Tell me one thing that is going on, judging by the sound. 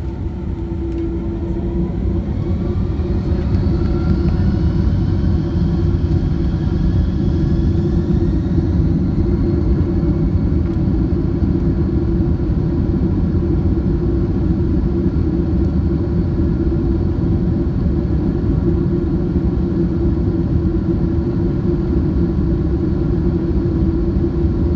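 Jet engines roar loudly and rise in pitch as a plane speeds up.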